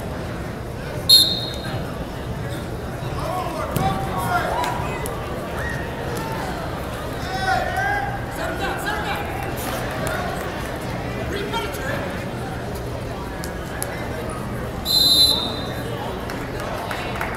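A crowd shouts and cheers in a large echoing gym.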